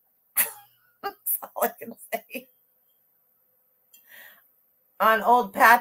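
A woman talks with animation and laughs, close to a microphone.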